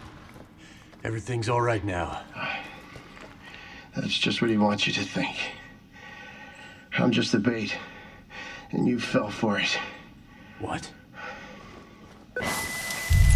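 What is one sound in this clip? A man speaks in a low, menacing voice, muffled through a gas mask, close by.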